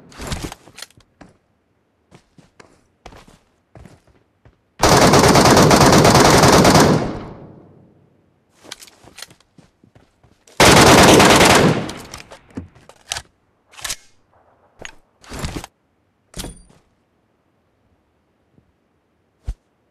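Rifle shots crack loudly with long echoing tails.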